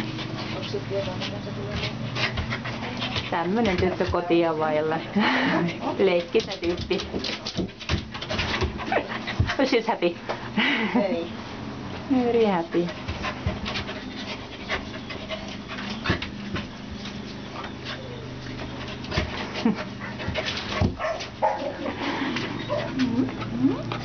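A young woman laughs and talks softly close by.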